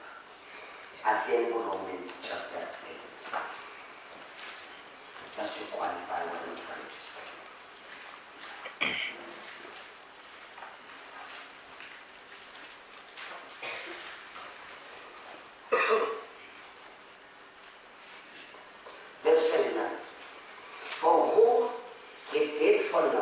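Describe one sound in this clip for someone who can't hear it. A man speaks slowly and deliberately into a microphone, with pauses, in an echoing room.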